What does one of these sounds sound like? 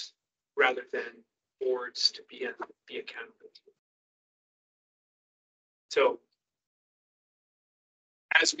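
A man speaks calmly, heard through a microphone in a room.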